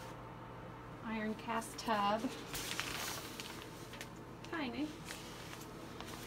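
A shower curtain rustles and slides as it is pushed aside.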